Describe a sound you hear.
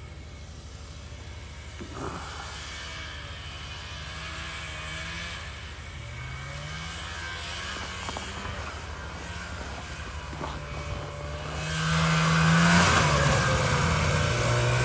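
A pickup truck engine idles.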